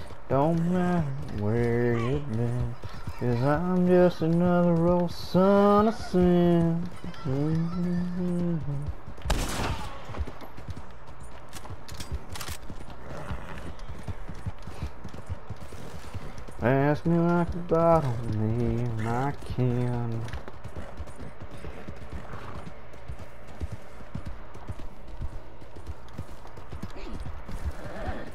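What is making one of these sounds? A horse gallops with hooves thudding on dirt.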